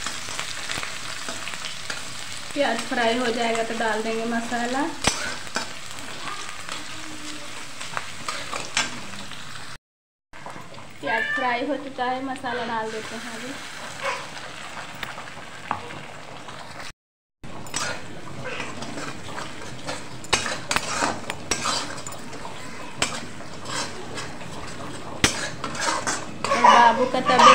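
Food sizzles in hot oil.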